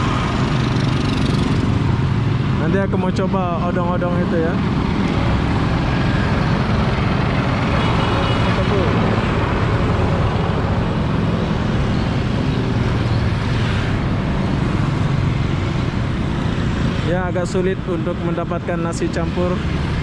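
Other motorbikes ride past nearby.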